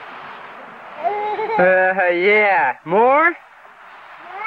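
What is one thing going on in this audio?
A toddler squeals and shouts excitedly close by.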